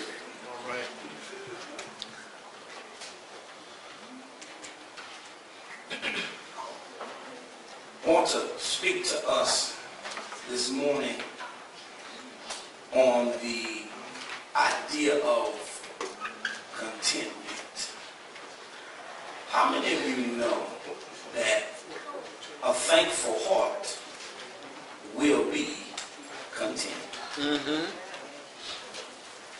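A man preaches with animation into a microphone in an echoing hall.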